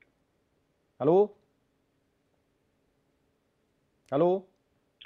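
A man speaks a few short words calmly into a microphone.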